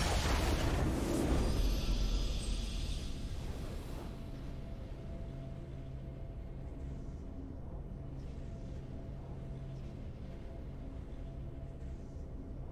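A triumphant game fanfare plays with long, steady held notes.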